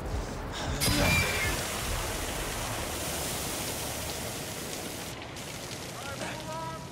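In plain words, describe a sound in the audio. Water gushes hard from a burst hydrant.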